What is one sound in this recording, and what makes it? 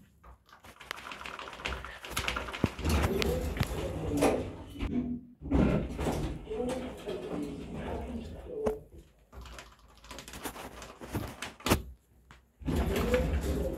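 Elevator buttons click as they are pressed.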